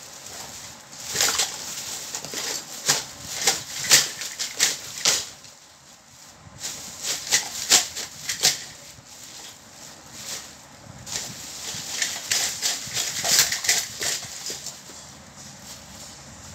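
A plastic bag crinkles and rustles loudly close by.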